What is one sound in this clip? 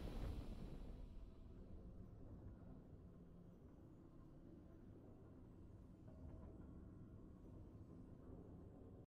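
A triumphant game fanfare swells and then fades into low music.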